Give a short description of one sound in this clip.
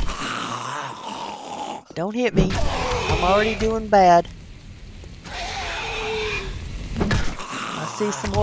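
A bat thuds into a zombie.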